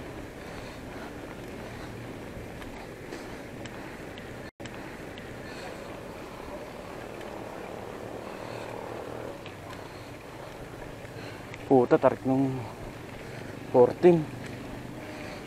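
Bicycle tyres roll steadily over a paved road.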